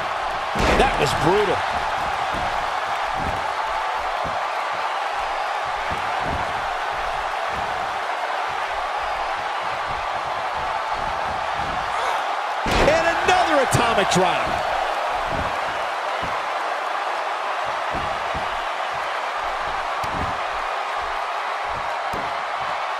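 An arena crowd roars and cheers.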